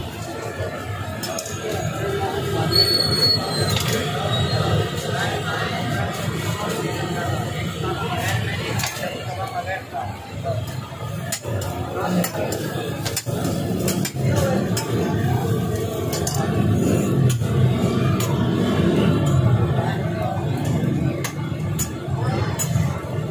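A metal spatula scrapes and taps on a hot griddle.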